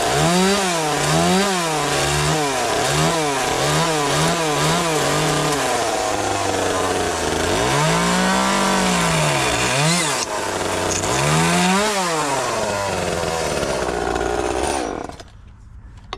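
A chainsaw revs and cuts through wood close by, rising and falling in pitch.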